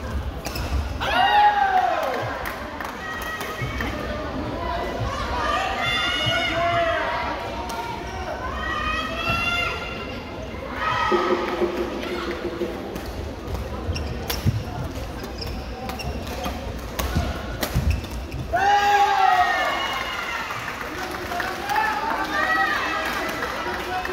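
Shoes squeak on a sports floor in a large echoing hall.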